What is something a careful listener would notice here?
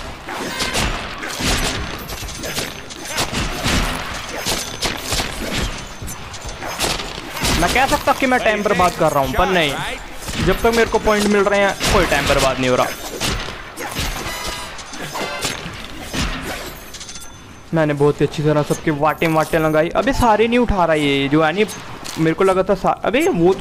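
Sword slashes and impacts from a video game clash rapidly.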